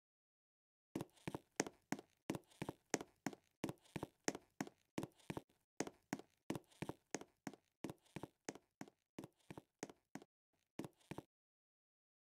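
A game character's footsteps patter quickly on a hard floor while running.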